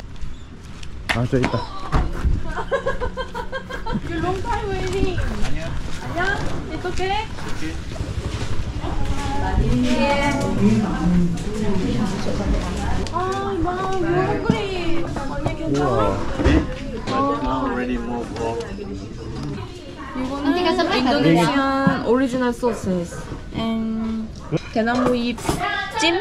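A woman talks casually close by.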